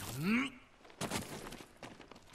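A figure lands heavily on rock.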